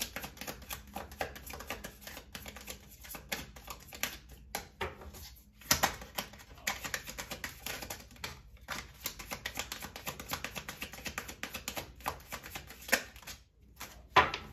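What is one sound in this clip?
Playing cards riffle and flick rapidly as a deck is shuffled close by.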